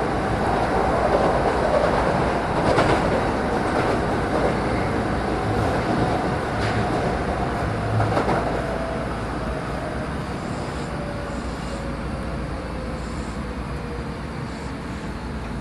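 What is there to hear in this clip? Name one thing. A train rumbles along the tracks, its wheels clacking over rail joints.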